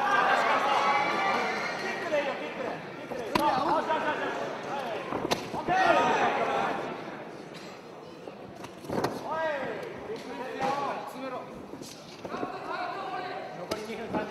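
A crowd of spectators shouts and cheers in a large hall.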